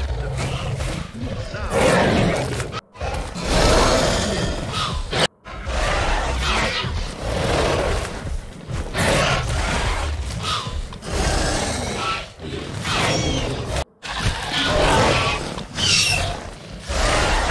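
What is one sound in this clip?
A large dinosaur roars and growls.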